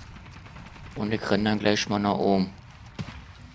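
A young man talks briefly into a close microphone.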